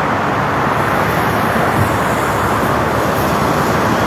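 A bus engine rumbles as the bus drives by.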